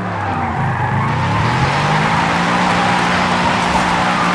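Tyres screech as a car skids sideways.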